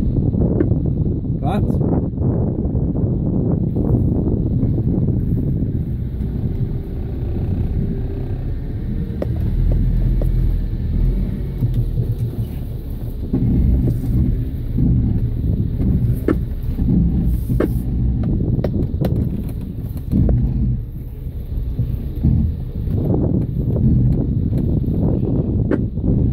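Wind gusts and buffets the microphone outdoors.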